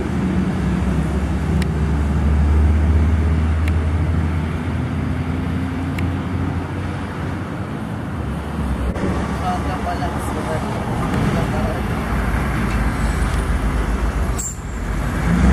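A heavy truck engine rumbles as the truck drives away.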